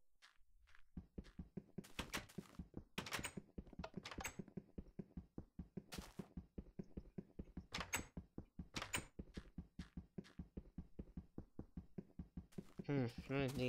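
A pickaxe taps rapidly and repeatedly against hard stone.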